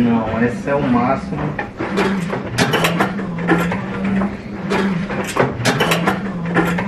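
Metal pots and pans clank and rattle as they are moved around.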